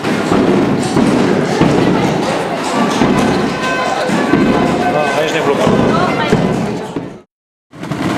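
Footsteps of a marching column tramp on paving.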